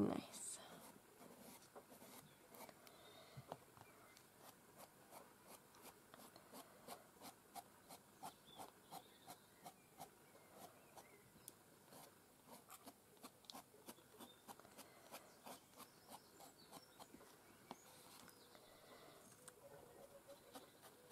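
A sponge dabs paint onto paper with soft, quick, repeated taps.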